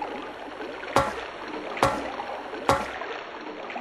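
Footsteps knock sharply on stairs, a few slow steps.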